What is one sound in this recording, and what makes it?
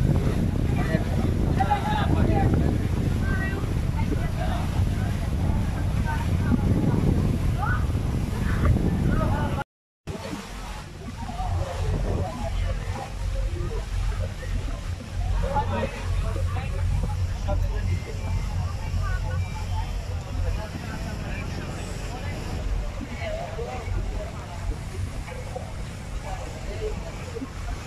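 Wind blusters loudly across the microphone outdoors by open water.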